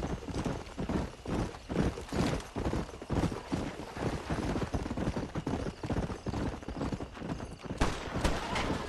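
Footsteps thud quickly on the ground as a man runs.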